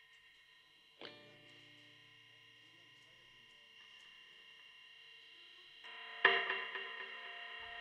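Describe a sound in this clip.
Drums and cymbals crash.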